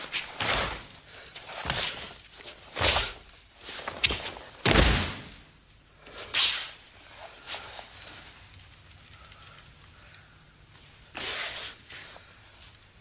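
A cotton uniform snaps sharply with quick punches and blocks.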